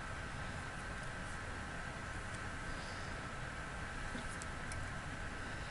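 Glasses click faintly as they are handled.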